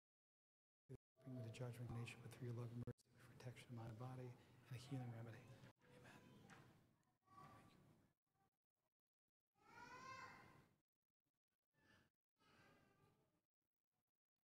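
An elderly man speaks slowly and solemnly through a microphone in a large echoing hall.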